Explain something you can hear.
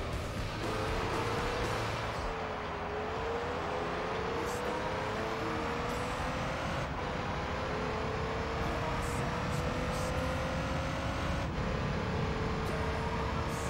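A racing car engine roars and climbs in pitch as it speeds up through the gears.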